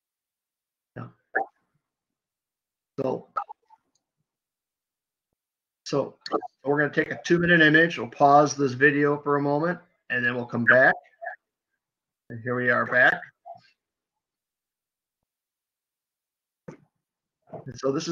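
An elderly man speaks calmly through an online call, with pauses.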